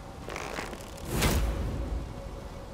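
An arrow whooshes off a bowstring.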